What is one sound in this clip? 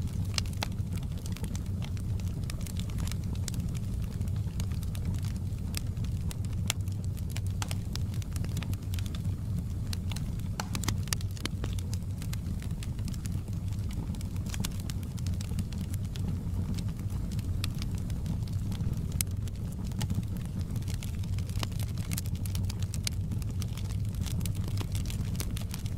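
Flames roar softly with a low, steady rumble.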